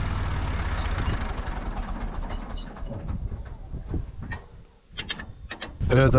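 Tall grass brushes and swishes against a tractor.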